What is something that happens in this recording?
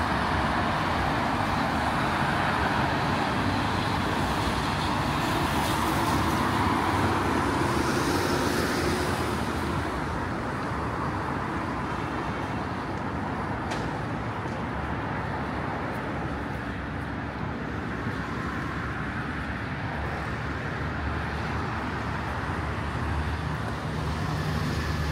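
Traffic hums steadily on a busy road below.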